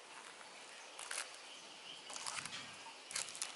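A booklet slides and rustles on a table.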